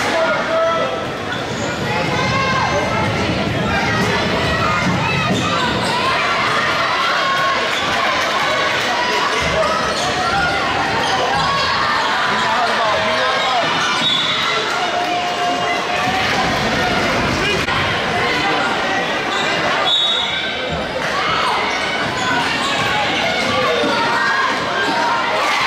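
A crowd cheers and chatters in an echoing gym.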